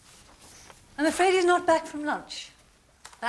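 A woman speaks nearby.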